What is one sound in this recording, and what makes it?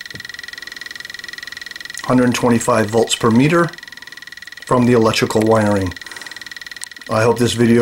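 An electronic meter gives off a steady, high buzzing tone.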